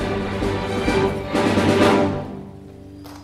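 An orchestra of strings plays a sustained chord in a large hall.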